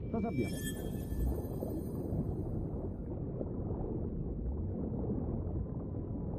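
Water churns and gurgles in a low, steady rumble.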